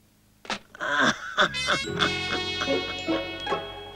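A telephone handset is put down with a clack.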